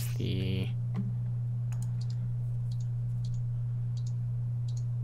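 Soft clicks sound as items are moved in a game menu.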